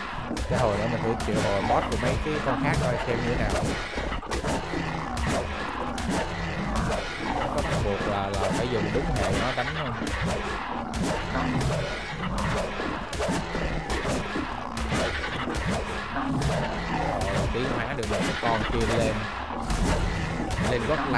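A large winged creature flaps its wings.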